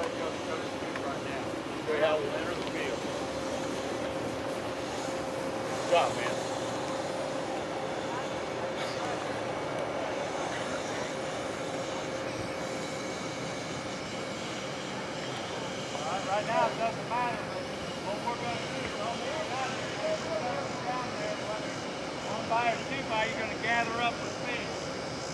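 Young men talk and shout in a crowd outdoors.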